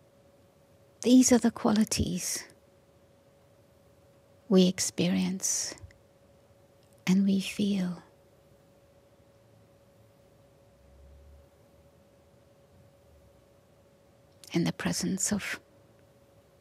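An elderly woman speaks slowly and calmly into a microphone, with long pauses.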